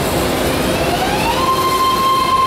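A subway train's motor whines, rising in pitch as it starts off.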